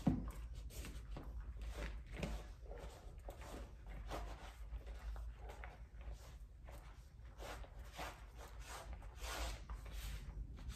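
A cloth scrubs back and forth along a tiled floor.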